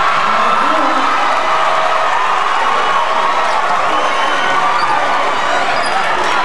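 A crowd murmurs and cheers in a large echoing gym.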